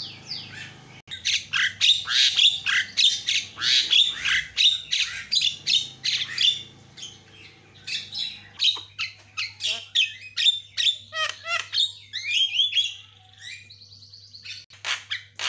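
A myna bird chatters and whistles loudly close by, in quick high calls.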